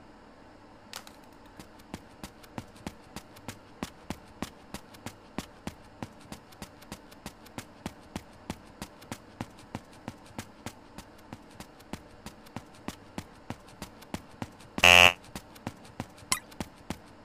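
Quick footsteps patter steadily across a hard floor.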